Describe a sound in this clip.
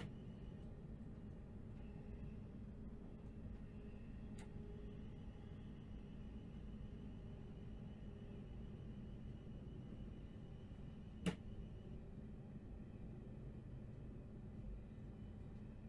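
A train rumbles steadily along the tracks through a tunnel.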